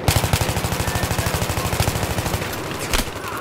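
A rifle fires in rapid automatic bursts.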